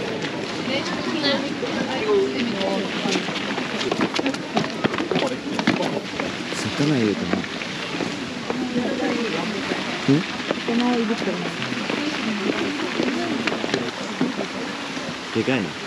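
Footsteps shuffle on stone steps.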